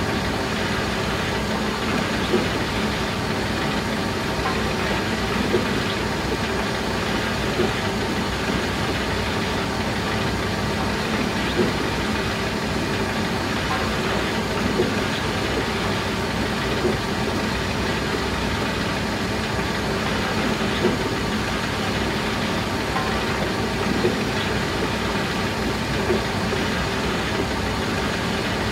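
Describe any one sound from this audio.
A machine's engine hums steadily.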